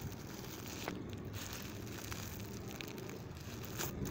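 Candy lollipops crunch and crack under a tyre.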